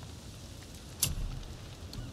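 A short, sharp menu click sounds once.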